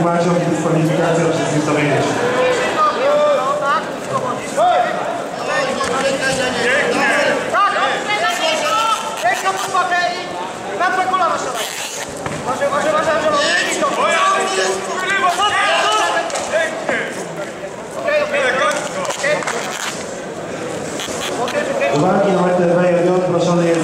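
Men shout loud encouragement in an echoing hall.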